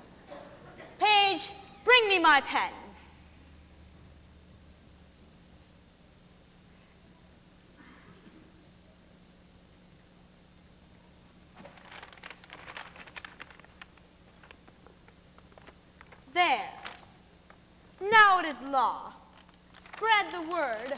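A young girl speaks out loudly and clearly on a stage, heard from across a hall.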